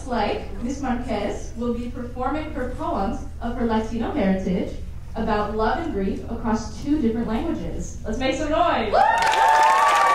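Two young women speak with animation through a microphone in a hall.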